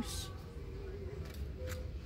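A hand brushes against a wooden cabinet door.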